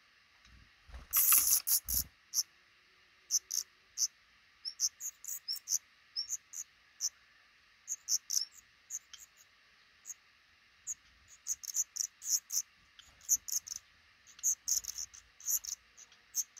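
Baby birds cheep shrilly in short, rapid bursts, close by.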